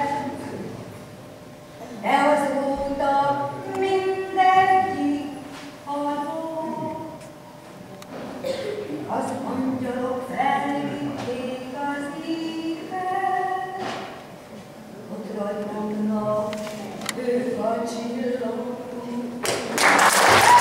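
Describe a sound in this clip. A choir of men sings together.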